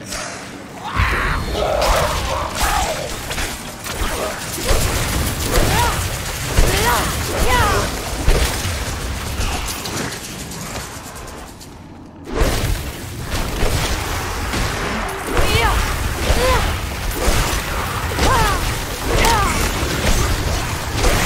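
Low rumbling booms sound from heavy blasts.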